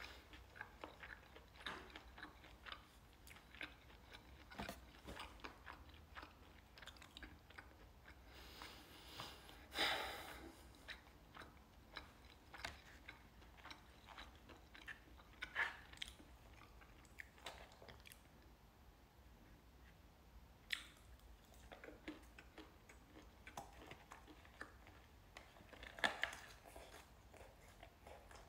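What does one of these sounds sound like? A young man chews food close to a microphone.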